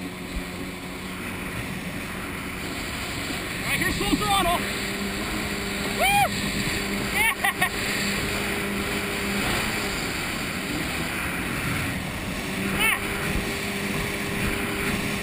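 A jet ski engine hums steadily close by.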